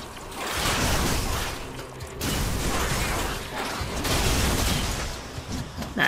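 Fiery magic blasts whoosh and roar during a fight.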